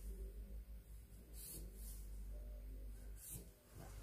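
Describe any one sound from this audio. A marker scratches on paper.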